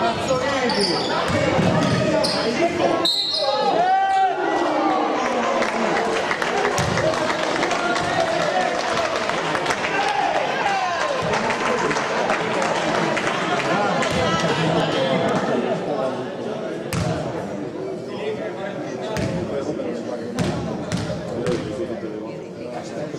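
Young men shout to each other in an echoing gym.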